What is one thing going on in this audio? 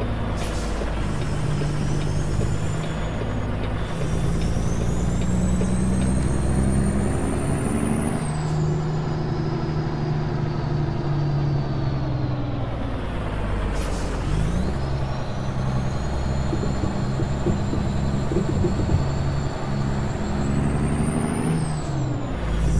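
A truck's diesel engine rumbles steadily and rises and falls in pitch as it shifts gears.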